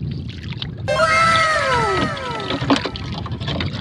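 A fish flaps and thumps on the boat's floor.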